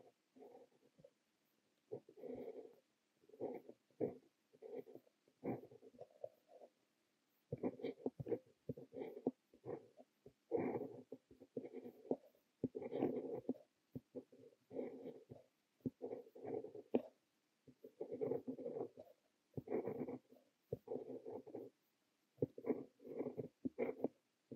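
A fountain pen nib scratches across paper in short, close strokes with brief pauses.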